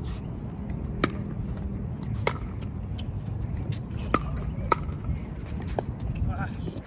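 Paddles hit a plastic ball with sharp pops, back and forth.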